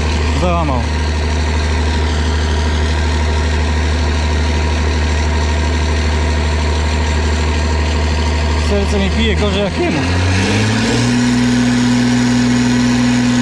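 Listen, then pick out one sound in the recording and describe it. A large tractor engine idles with a deep steady rumble close by.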